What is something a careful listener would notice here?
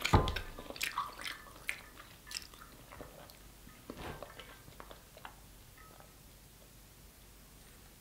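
A young woman sips a drink through a straw.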